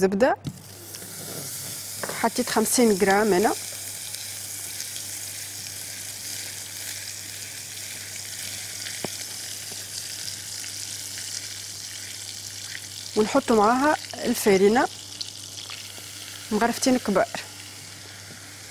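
A wooden spoon scrapes and stirs in a pot.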